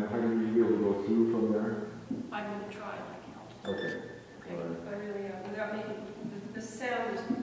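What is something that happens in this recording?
A grand piano plays a melody in a reverberant hall.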